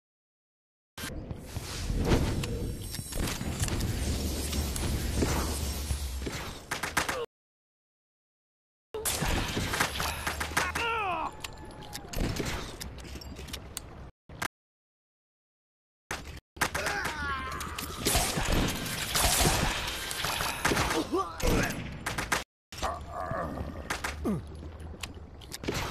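A pistol fires in quick bursts of shots.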